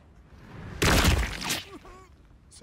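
Fiery blasts burst with a loud whoosh.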